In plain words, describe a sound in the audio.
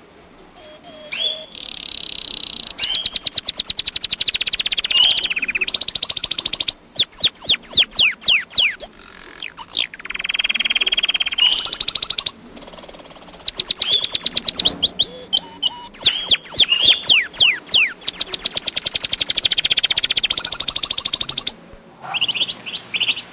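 A small songbird sings loudly and close by, with fast trills and rapid chirps.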